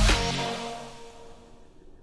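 Water splashes nearby.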